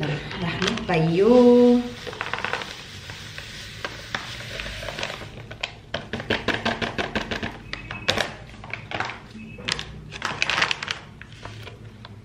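Powder pours and rustles from a packet into a plastic tub.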